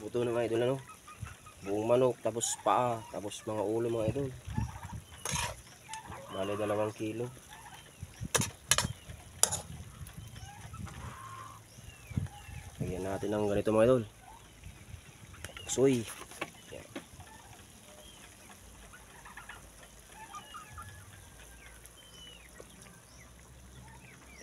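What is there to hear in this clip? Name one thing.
Meat sizzles in a hot pan.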